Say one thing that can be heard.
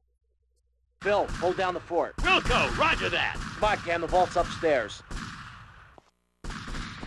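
A man shouts orders with urgency.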